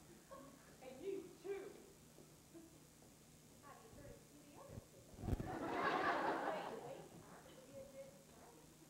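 Actors speak and call out on a stage, heard from a distance in a large hall.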